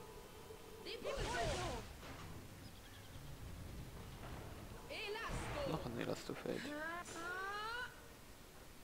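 A magic spell whooshes and shimmers with rising chimes.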